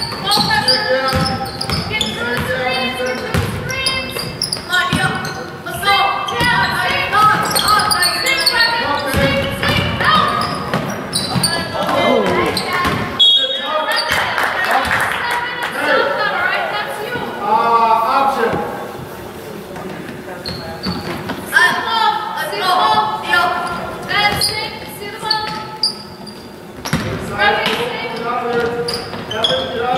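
Young players call out to each other across an echoing gym.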